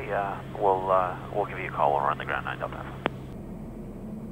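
A man speaks calmly through a headset microphone.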